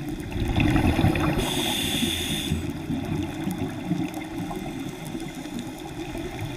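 Bubbles from a diver's breathing gear gurgle and hiss, muffled underwater.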